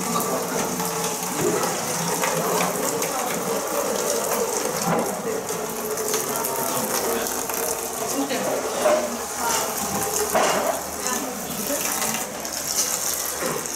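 Several women talk and chatter together close by.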